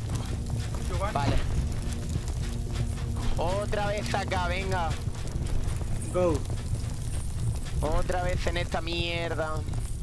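A young man talks casually into a microphone, in short bursts.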